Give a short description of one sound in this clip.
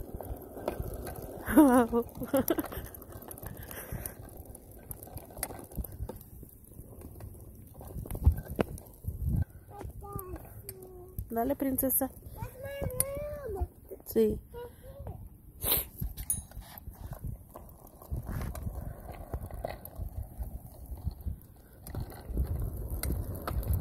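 Small bicycle wheels roll over pavement with a low rumble.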